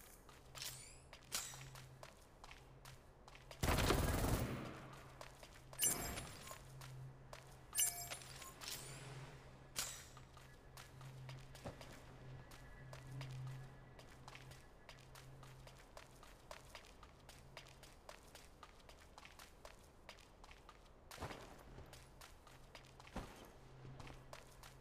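Quick footsteps patter on a wooden floor.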